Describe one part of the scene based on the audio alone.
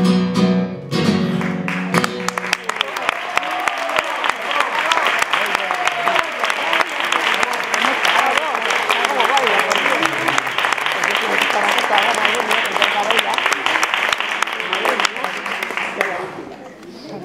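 An audience claps and cheers loudly in an echoing hall.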